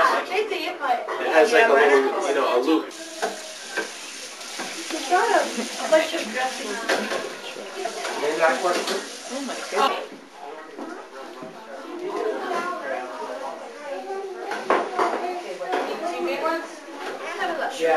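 Several adults chat with animation nearby.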